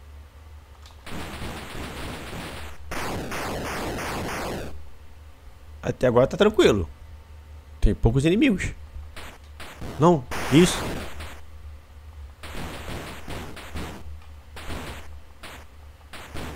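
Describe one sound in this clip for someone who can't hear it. Electronic game sound effects bleep and buzz with falling tones.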